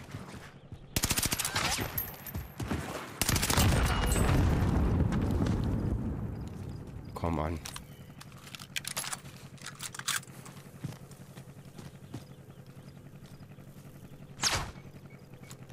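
Rifle shots crack loudly.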